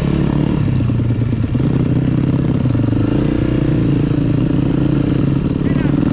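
A dirt bike engine revs and buzzes loudly up close.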